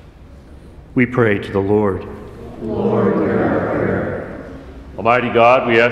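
An older man speaks through a microphone in a large echoing hall.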